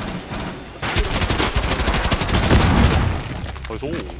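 Rapid gunfire rattles in a short burst.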